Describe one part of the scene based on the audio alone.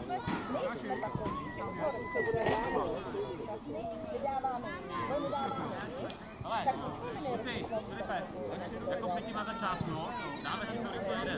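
Children shout and call out from a distance outdoors.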